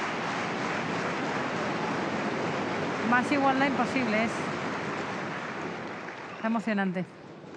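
A large crowd applauds and cheers in a big echoing hall.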